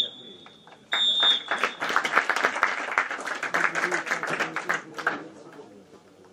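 Players and spectators clap their hands in scattered applause.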